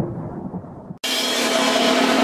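A brass band plays loudly outdoors.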